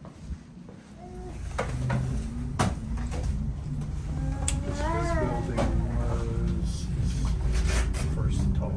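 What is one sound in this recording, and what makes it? A cable car rumbles and hums as it glides along its cables.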